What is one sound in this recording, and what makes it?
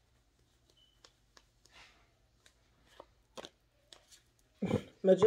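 Cards shuffle and tap softly close by.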